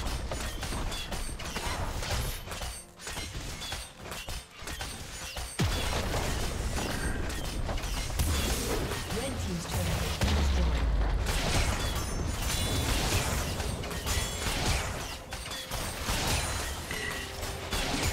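Game combat effects clash and crackle.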